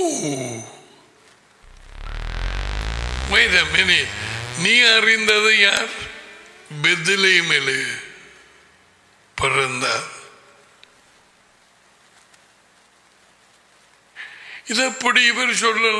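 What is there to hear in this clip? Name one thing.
An older man speaks with animation, close to a microphone, pausing between phrases.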